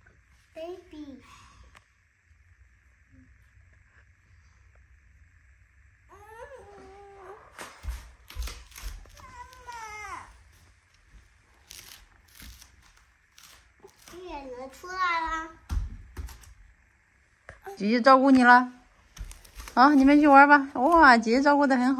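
A young child talks and squeals in high, playful bursts close by.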